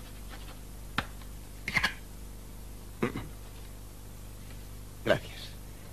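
Paper rustles and slides on a table.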